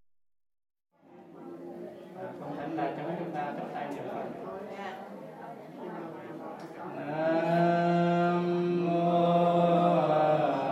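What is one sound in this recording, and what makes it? A group of men chant together in a steady, droning unison.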